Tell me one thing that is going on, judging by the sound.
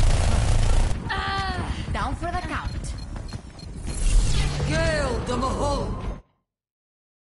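Game characters cry out in short bursts.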